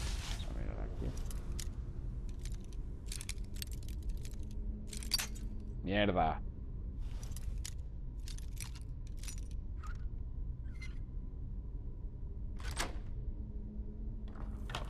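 A metal lock pick clicks and scrapes inside a lock.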